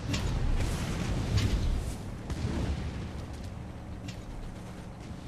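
Guns fire in bursts from a vehicle.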